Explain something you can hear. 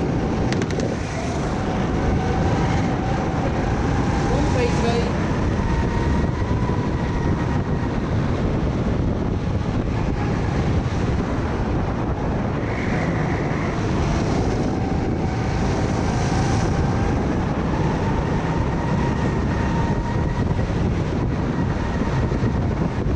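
A go-kart engine buzzes loudly up close, rising and falling in pitch.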